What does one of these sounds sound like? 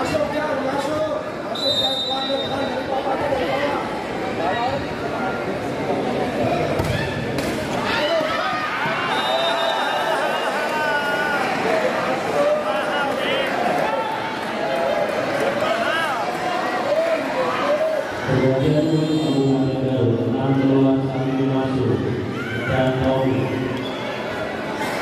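A large crowd cheers and chants loudly in an echoing hall.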